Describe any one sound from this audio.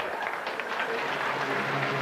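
A crowd laughs in a large hall.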